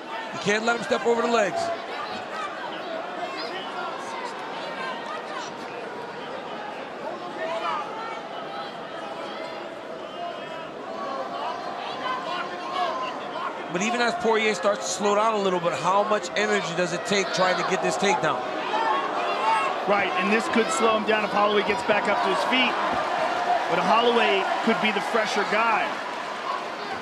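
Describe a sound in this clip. A large crowd murmurs and cheers in a big echoing arena, growing louder toward the end.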